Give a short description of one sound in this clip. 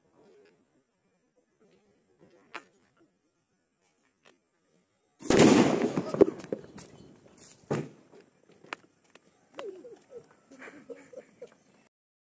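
Sparks crackle and fizz from a burning firework.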